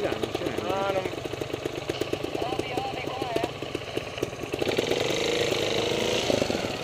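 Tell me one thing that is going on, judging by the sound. A motorbike engine chugs and revs steadily up close.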